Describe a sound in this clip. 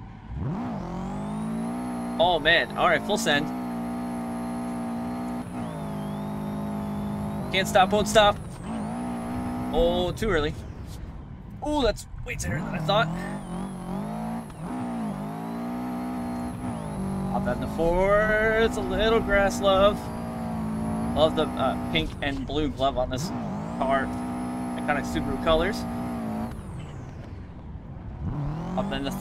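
A car engine revs high and drops as gears change.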